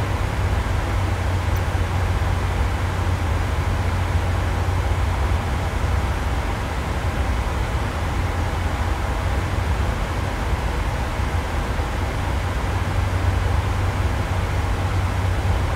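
Jet engines hum with a steady low drone.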